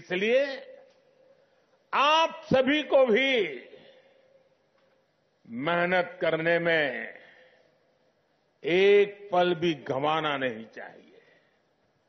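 An elderly man speaks forcefully into a microphone, in short phrases with pauses, echoing over loudspeakers.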